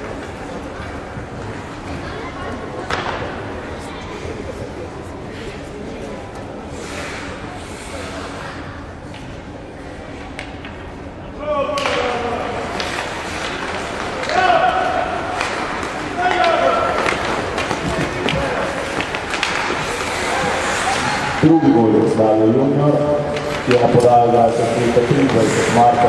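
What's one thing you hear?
Skates scrape on ice in a large echoing rink.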